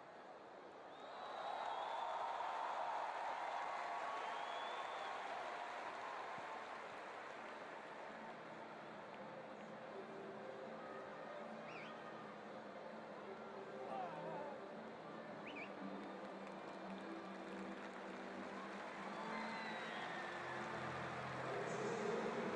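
A large stadium crowd cheers and roars, then slowly settles.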